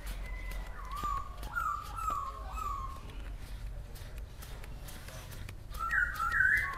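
Banknotes rustle softly as a man counts them by hand.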